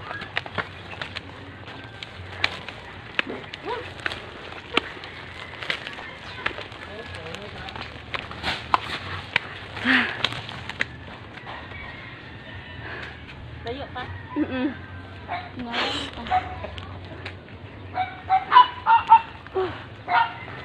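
Footsteps crunch on dirt and gravel outdoors.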